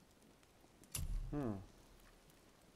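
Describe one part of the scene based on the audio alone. A game menu plays a short falling whoosh as a panel opens.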